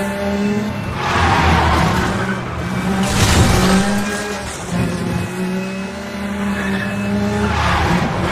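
Tyres screech in bursts as a car slides through bends.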